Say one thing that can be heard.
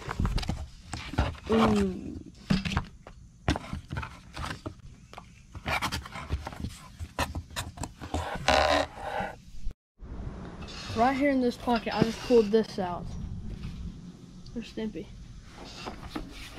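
Cardboard box flaps scrape and rustle as hands open and handle them.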